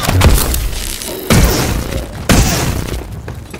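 Gunfire bursts out loudly at close range.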